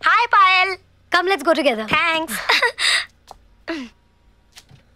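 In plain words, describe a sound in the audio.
A young woman speaks cheerfully up close.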